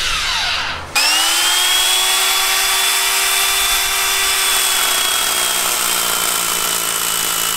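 An electric chainsaw whines steadily.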